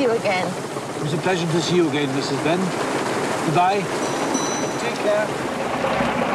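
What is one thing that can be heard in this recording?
An elderly man speaks gently close by.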